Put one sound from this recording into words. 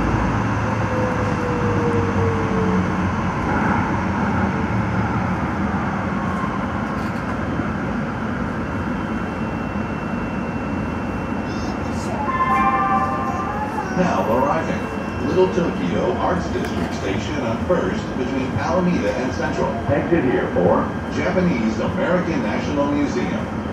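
A train rumbles steadily through a tunnel.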